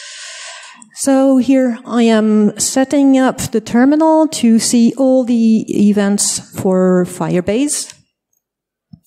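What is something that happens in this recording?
A woman speaks into a microphone with animation in an echoing hall.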